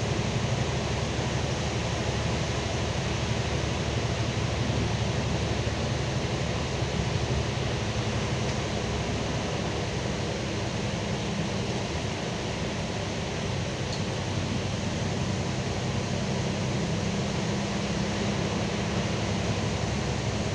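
A bus engine hums low and steady from inside the bus.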